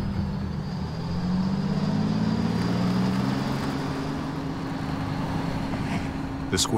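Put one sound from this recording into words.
A truck engine rumbles and revs.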